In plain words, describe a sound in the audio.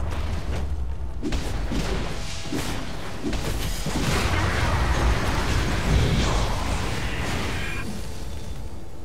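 Game combat effects clash and burst in quick succession.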